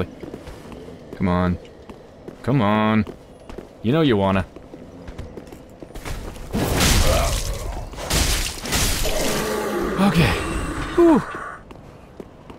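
Weapons swing and strike in a close fight.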